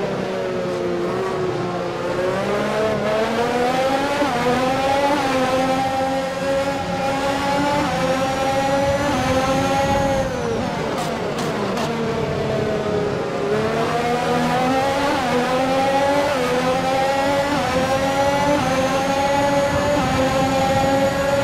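A racing car engine roars, rising in pitch through the gears and dropping as it slows for a corner.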